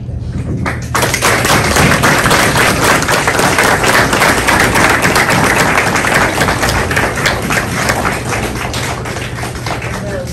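Many hands clap in loud applause, then fade.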